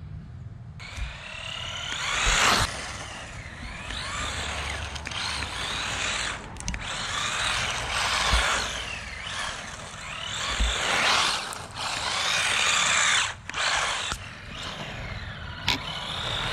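Small tyres hiss on rough tarmac.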